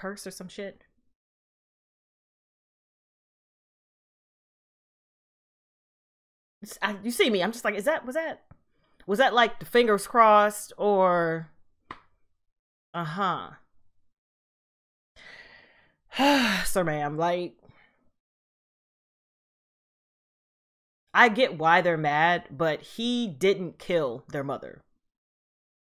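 A young woman talks with animation close to a microphone, with pauses.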